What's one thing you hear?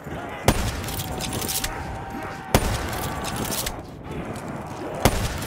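A rifle fires loud single shots, a few seconds apart.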